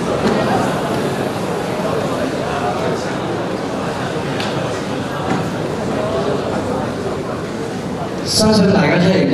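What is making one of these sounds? A large audience chatters and murmurs in an echoing hall.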